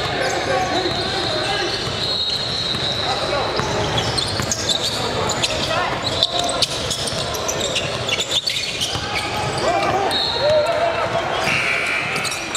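A basketball bounces on the court with hollow thumps.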